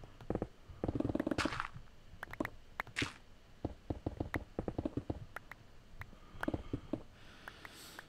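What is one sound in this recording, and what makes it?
Stone blocks crack and break in quick bursts.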